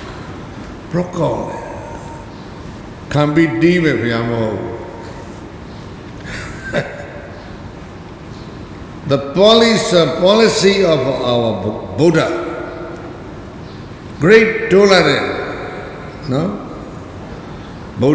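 An elderly man speaks slowly and calmly into a microphone, with pauses.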